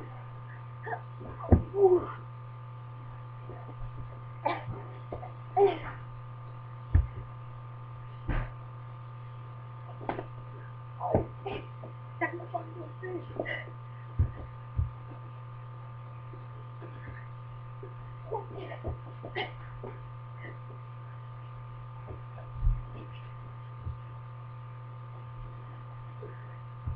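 Feet thump and shuffle on a carpeted floor.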